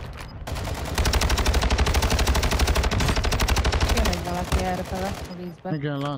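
Rapid rifle fire rattles.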